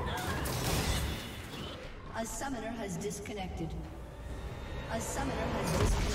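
Magic spells crackle and whoosh in quick bursts.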